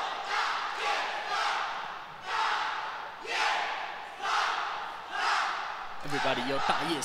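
A group of young men and women shout a chant together in rhythmic bursts.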